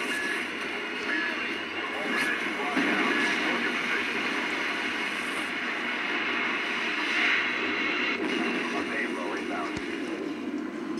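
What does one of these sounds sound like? Gunfire and game sound effects play from a television speaker.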